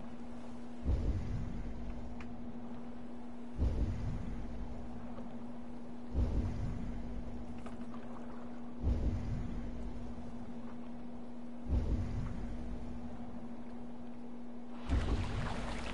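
Waves slap and splash against a wooden boat in regular bursts.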